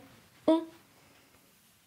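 A young woman speaks a short word close to a microphone.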